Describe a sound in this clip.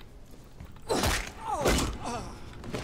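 A pistol fires a loud shot.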